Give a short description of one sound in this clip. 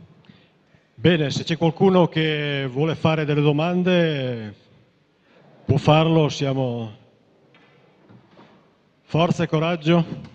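A middle-aged man speaks into a microphone, heard through loudspeakers in a large echoing hall.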